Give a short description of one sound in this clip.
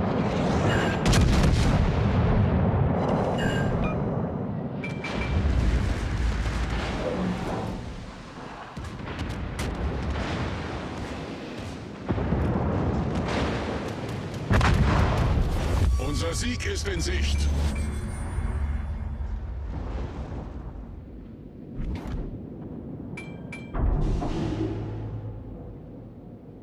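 Heavy naval guns fire with deep, booming blasts.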